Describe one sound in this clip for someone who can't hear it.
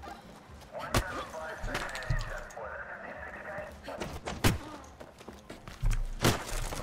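Fists strike a body with heavy, sharp thuds.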